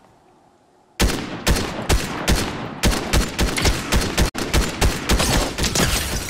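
A rifle fires rapidly in loud, close bursts.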